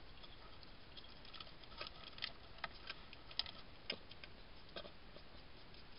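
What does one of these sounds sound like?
Small clicks and scratches sound as a hedgehog chews and forages.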